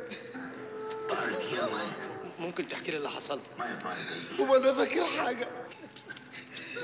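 Men laugh loudly and heartily.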